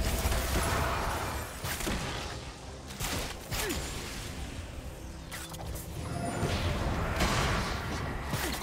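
Magic spells whoosh and crackle in a fast fight.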